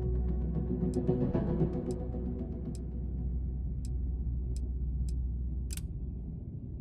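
Soft interface clicks tick as a menu selection moves.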